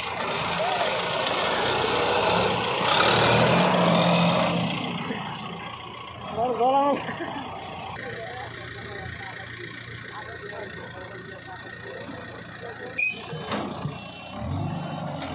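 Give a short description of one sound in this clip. A tractor engine rumbles and chugs nearby.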